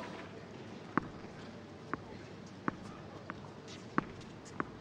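A tennis ball bounces on the court several times.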